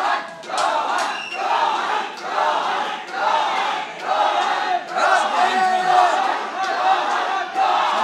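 A woman referee calls out commands.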